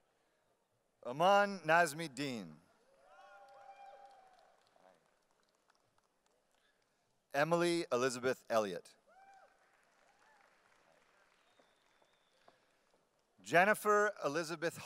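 A man reads out names one at a time through a microphone in a large echoing hall.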